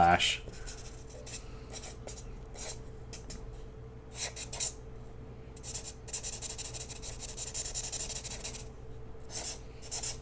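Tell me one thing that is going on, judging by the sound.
A marker squeaks and scratches across paper in short strokes.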